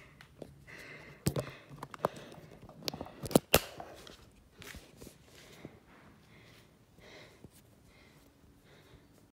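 Fingers rub and tap against a phone close up.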